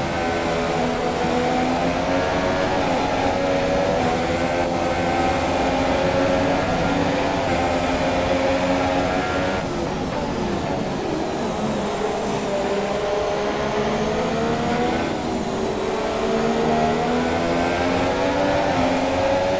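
Tyres hiss on a wet track.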